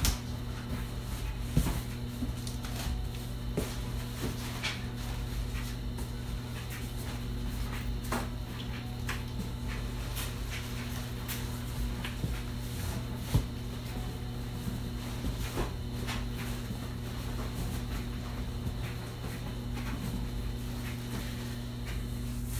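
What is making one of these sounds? Cardboard boxes rustle and thump.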